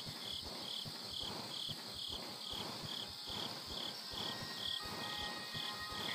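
Heavy footsteps thud steadily on a wooden floor.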